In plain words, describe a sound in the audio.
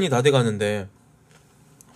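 A young man speaks briefly and closely into a microphone.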